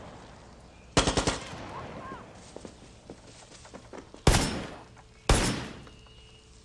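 Rifle shots crack loudly, one at a time.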